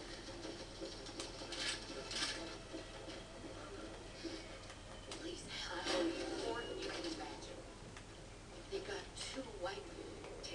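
Game sounds and noises play through a loudspeaker.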